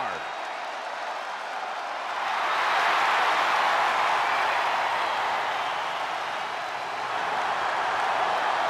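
A large arena crowd cheers.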